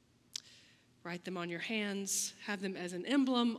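A woman sings out strongly through a microphone.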